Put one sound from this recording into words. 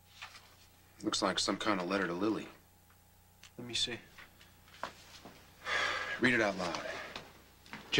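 A man reads aloud in a low, serious voice, close by.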